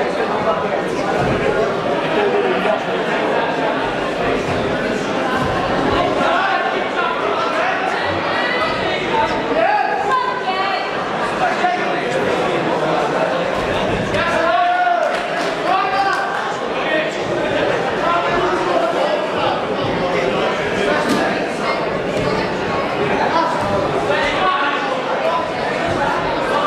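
A crowd of men and women chatters and shouts loudly in a large echoing hall.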